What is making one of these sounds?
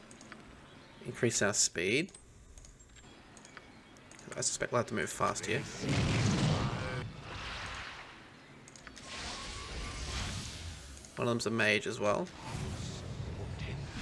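A magic spell hums and whooshes.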